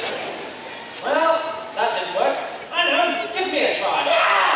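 A man speaks with animation over a loudspeaker, echoing outdoors.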